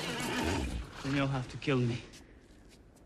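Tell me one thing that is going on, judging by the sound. A younger man answers calmly.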